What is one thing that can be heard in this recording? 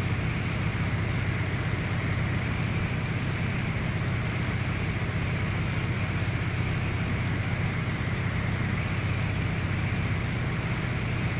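Propeller engines drone steadily inside a small plane's cockpit.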